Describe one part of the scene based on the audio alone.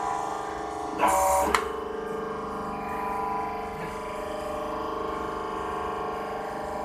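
Clay blocks knock against the metal of a machine.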